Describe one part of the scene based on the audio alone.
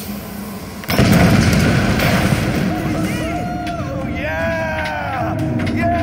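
A heavy structure crashes down with a loud, rumbling roar.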